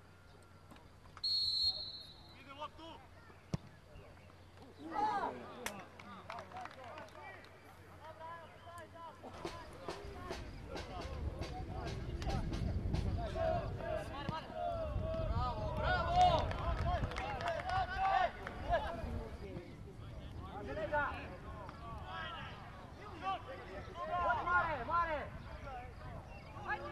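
Players shout to each other outdoors across an open field.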